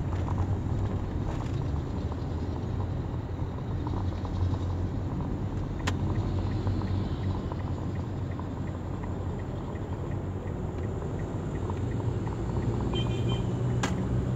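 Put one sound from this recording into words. A car engine hums steadily from inside.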